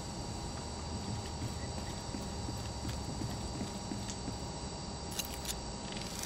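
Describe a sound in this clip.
Heavy footsteps clank on a metal grating.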